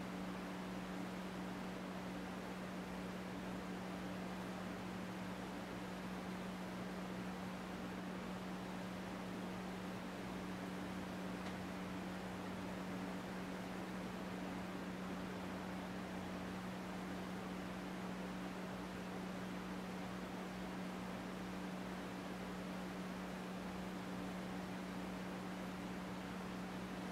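A man hums one low, steady note close by.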